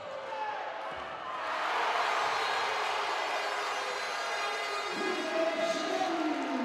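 A large crowd cheers and roars in an echoing hall, swelling louder.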